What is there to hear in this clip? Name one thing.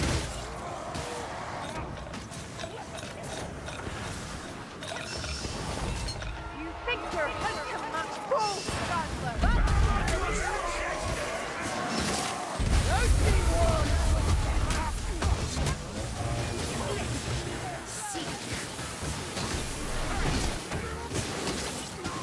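Swords clash and slash against monsters.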